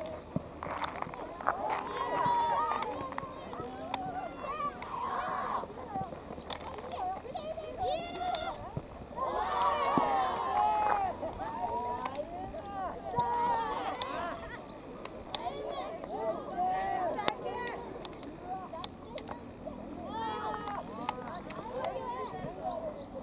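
Boys shout and call to each other across an open field.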